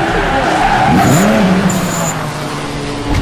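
A car engine revs hard.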